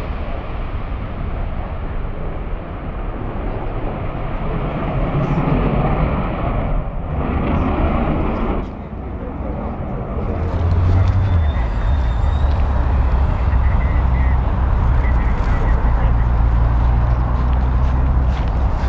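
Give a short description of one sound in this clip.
A jet engine roars loudly overhead, rising and falling as it passes.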